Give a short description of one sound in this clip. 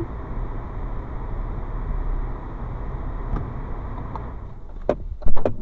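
Car tyres rumble over cobblestones and then come to a stop.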